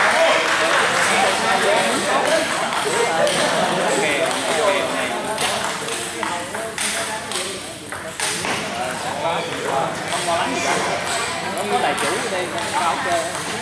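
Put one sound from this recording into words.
A crowd of people chatter in an echoing hall.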